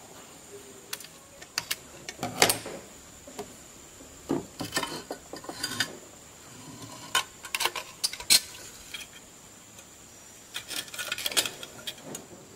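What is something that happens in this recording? Thin metal sheet crinkles and clicks as hands handle it.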